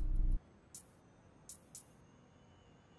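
A game menu clicks softly.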